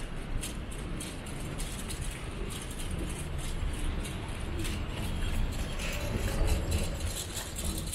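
A luggage trolley rolls along the floor in a large echoing hall.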